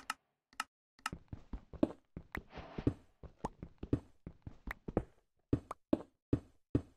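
A pickaxe knocks against stone blocks in quick repeated strikes.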